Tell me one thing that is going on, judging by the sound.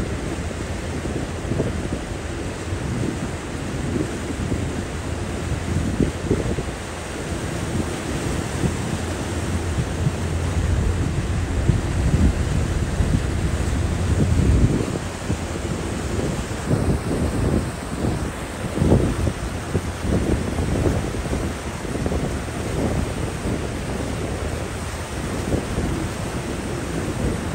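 Small waves lap and splash against the shore.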